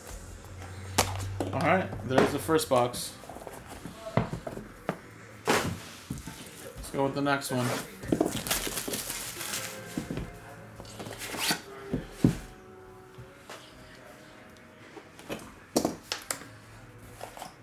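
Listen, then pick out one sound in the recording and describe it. Cardboard boxes knock and slide on a table.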